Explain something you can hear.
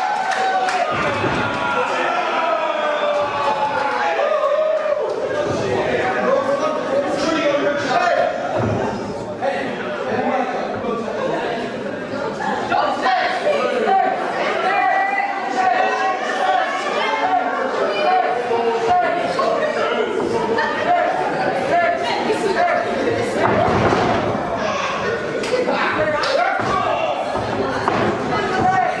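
A crowd of men and women chatters and shouts in a large echoing hall.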